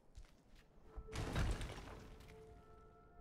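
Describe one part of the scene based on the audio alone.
Stone crumbles and breaks apart with a loud crash.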